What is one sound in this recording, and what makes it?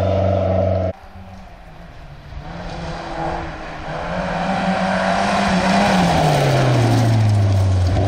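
A second rally car engine roars as it approaches and passes close by.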